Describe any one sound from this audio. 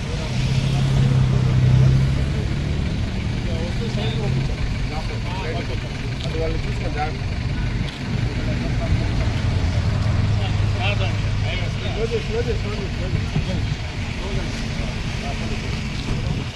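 Adult men talk calmly with each other outdoors.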